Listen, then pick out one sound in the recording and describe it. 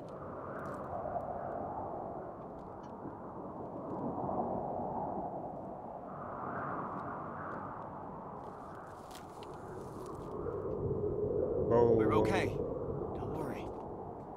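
Wind gusts and howls steadily outdoors.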